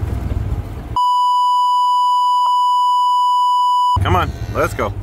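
A steady beep tone sounds.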